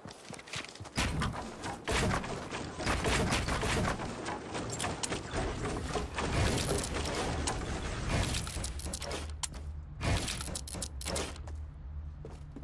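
Wooden building pieces clatter and thud into place rapidly.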